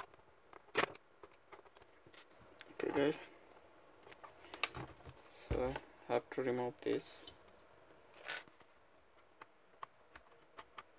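Plastic knocks and clicks as a laptop is turned over and opened.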